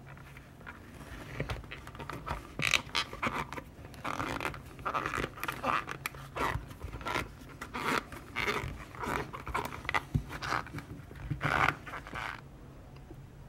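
Stiff leather crinkles and rustles.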